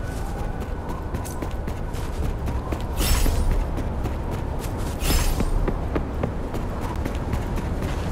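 Footsteps patter quickly over ground and stone steps.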